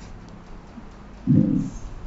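A man coughs into his hand.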